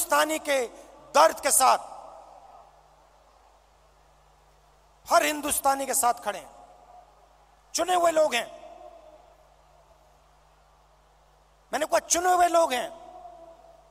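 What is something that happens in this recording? A man speaks forcefully in short bursts through loudspeakers, echoing outdoors.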